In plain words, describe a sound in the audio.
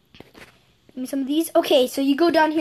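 A child speaks with animation close to a microphone.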